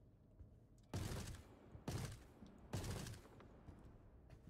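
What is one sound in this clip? A rifle fires several loud shots that echo.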